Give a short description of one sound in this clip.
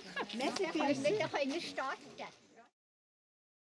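A woman speaks to a group.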